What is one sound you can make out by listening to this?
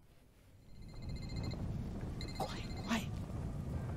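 A phone call rings out with a repeating electronic tone.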